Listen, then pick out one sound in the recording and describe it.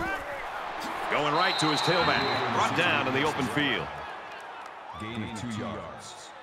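A crowd cheers loudly in a large stadium.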